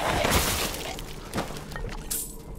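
A pistol fires loudly with a sharp crack.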